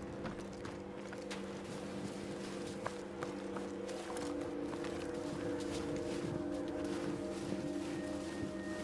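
Footsteps crunch through snow at a steady pace.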